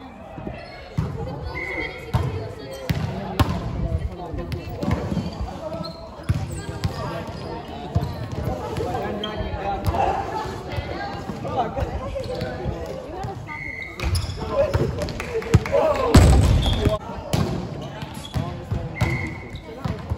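Players call out and talk in a large echoing hall.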